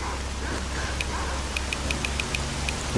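Menu items click rapidly.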